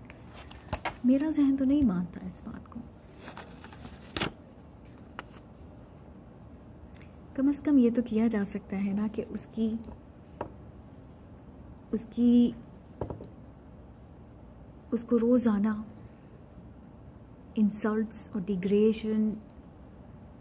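A woman speaks calmly and close by, in short bursts with pauses.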